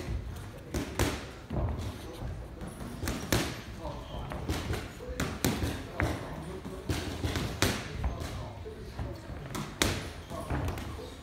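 Boxing gloves thud sharply against mitts in quick bursts.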